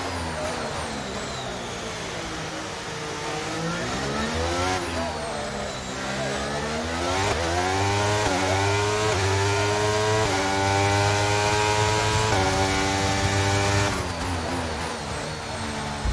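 A racing car engine screams at high revs, rising and dropping as the gears shift.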